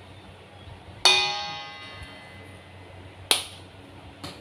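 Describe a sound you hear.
A spoon clinks against a metal bowl, which rings briefly.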